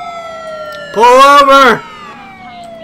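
A man shouts loudly into a close microphone.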